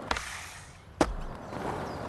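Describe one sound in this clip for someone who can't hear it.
A skateboard lands hard with a loud clack.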